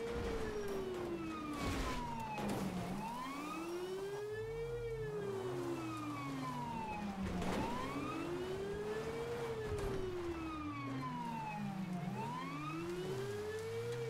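A police siren wails up and down close by.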